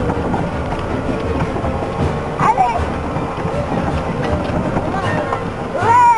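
Tyres roll and bump over uneven grass.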